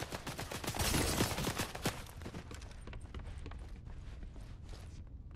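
Footsteps thud quickly across a wooden floor.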